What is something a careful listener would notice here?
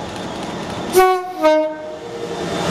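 A train horn blares twice in short loud blasts.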